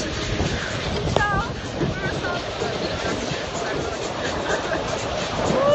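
Wind blusters loudly across a microphone outdoors.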